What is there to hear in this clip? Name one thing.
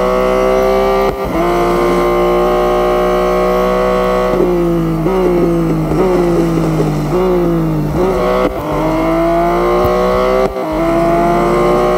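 A racing car engine roars at high revs, dropping in pitch briefly at each gear change.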